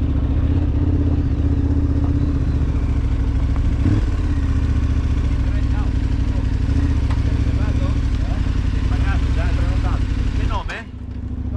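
A motorcycle engine rumbles steadily close by, then cuts out.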